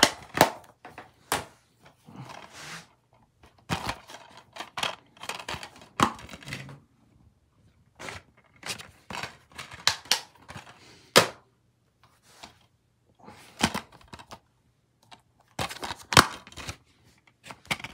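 Plastic DVD cases click and clatter as they are handled.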